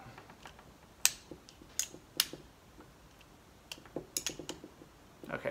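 Small plastic parts click as they are handled.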